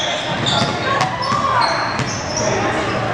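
A basketball bounces on the court floor.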